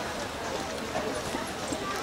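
A horse's hooves thud past close by.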